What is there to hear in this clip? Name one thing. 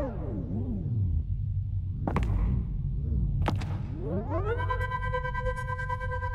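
Sharp blows land in a scuffle.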